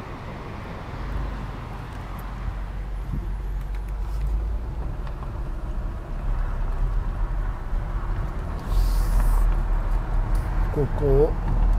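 Car tyres crunch over gravel.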